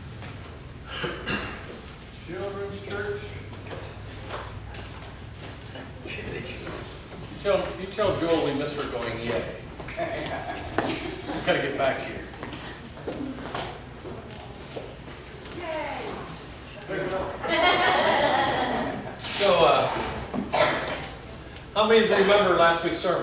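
An older man speaks calmly to a room, heard from a short distance in a slightly echoing space.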